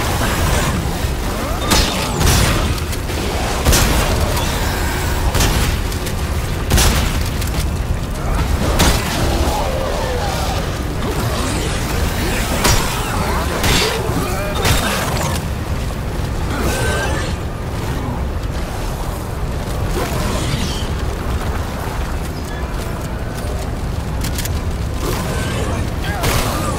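Monsters screech and snarl.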